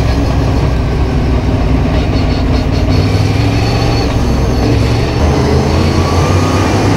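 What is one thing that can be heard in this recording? Tyres rumble over a dirt track.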